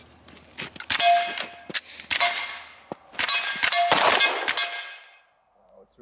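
Rifle shots crack rapidly in the distance.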